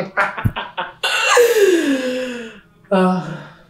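A woman laughs loudly, close by.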